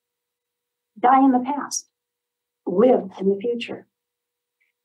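An older woman reads aloud calmly, close to a microphone.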